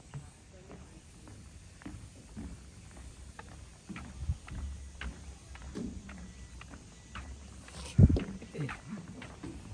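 Footsteps thud on a wooden walkway.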